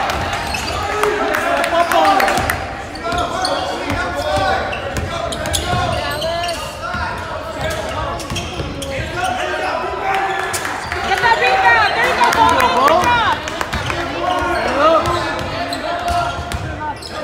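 A crowd of men and women talks and calls out in an echoing gym.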